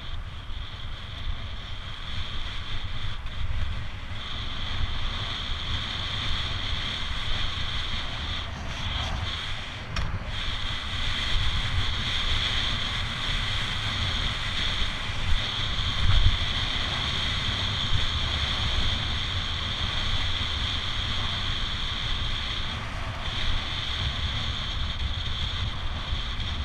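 Wind rushes loudly past a fast-moving bicycle.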